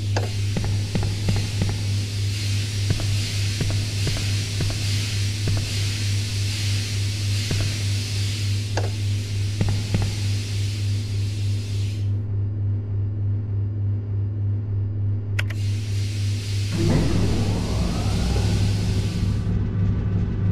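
Steam hisses loudly from a pipe.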